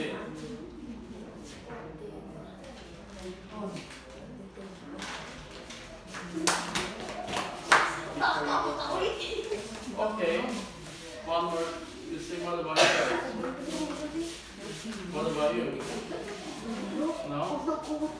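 Children talk and laugh among themselves.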